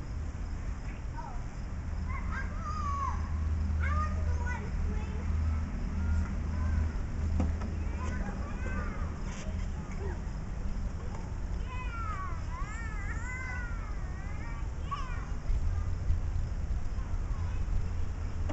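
A toddler's shoes tap and scuff on metal steps.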